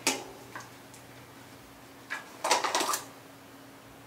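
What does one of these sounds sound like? A jar lid clicks open.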